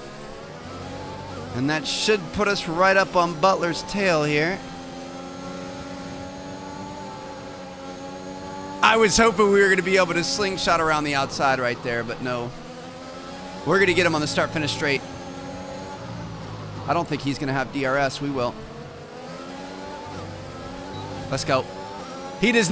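A racing car engine whines steadily, rising and falling as it shifts gears.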